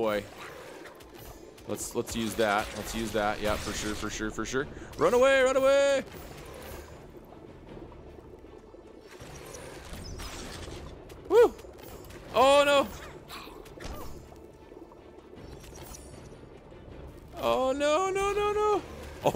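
Blades swish and strike in a fast fight.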